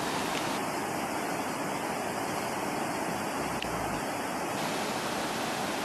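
A fast river rushes loudly over rocks close by.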